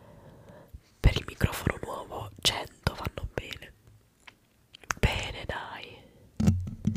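Wet mouth clicks and pops sound right at a microphone.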